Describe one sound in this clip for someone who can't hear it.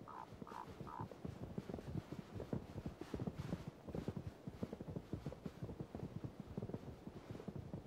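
Elk hooves thud and crunch on snowy ground as the herd runs.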